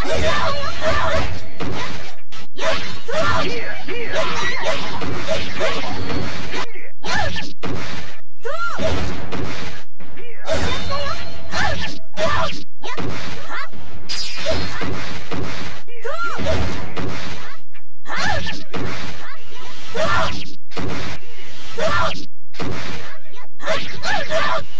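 Game characters cry out as they fight.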